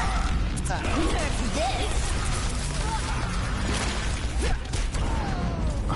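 Sharp blasts and impacts crack out.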